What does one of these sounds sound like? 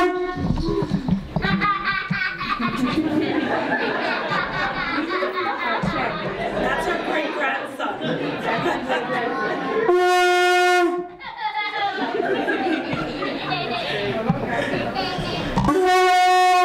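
A group of women laugh and chatter excitedly nearby.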